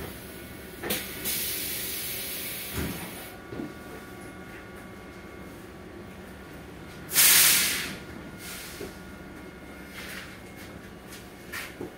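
A bus hums and rumbles steadily as it moves.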